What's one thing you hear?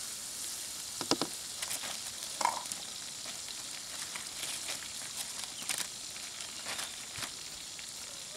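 Palm leaves rustle and crackle as they are handled.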